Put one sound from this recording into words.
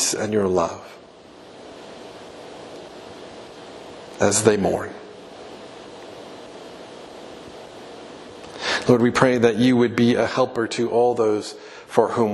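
A man speaks calmly through a microphone in a large echoing hall, with long pauses.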